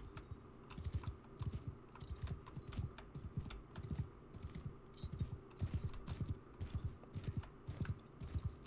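A horse's hooves thud steadily on grass.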